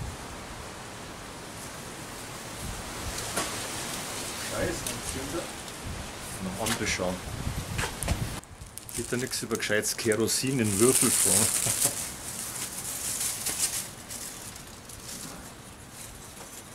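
Charcoal briquettes clatter as a man arranges them.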